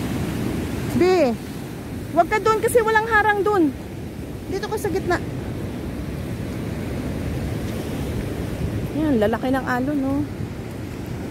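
A young girl's voice calls out nearby.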